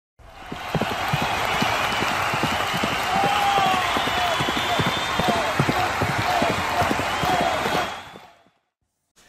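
Horses gallop with pounding hooves.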